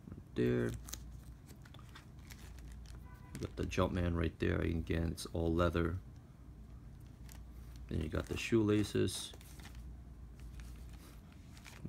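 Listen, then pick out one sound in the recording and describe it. Plastic wrapping crinkles and rustles as it is handled.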